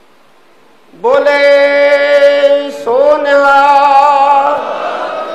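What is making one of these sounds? A man sings long, drawn-out notes loudly into a microphone.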